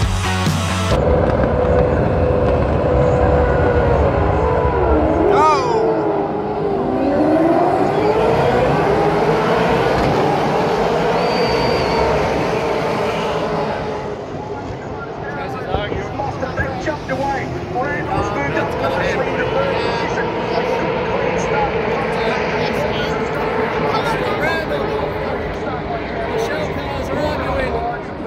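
Racing car engines roar past loudly, their pitch rising and falling.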